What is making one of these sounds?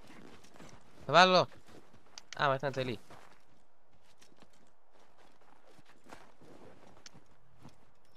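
A person's footsteps crunch through snow.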